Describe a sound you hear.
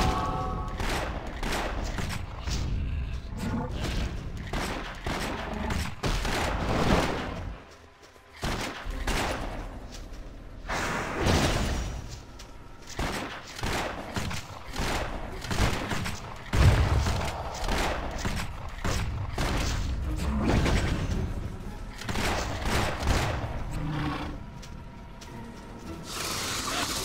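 Magic bolts zap and crackle in rapid bursts.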